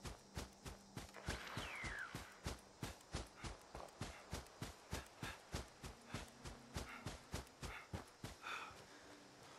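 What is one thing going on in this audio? Footsteps crunch quickly through dry brush.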